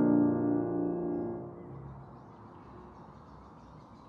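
A grand piano chord rings out in a large echoing hall and slowly fades.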